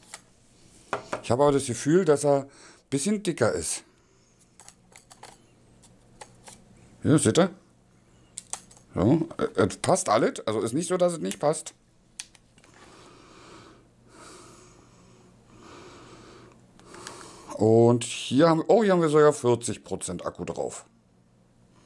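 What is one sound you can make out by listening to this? A man talks calmly and close by, in bursts with pauses.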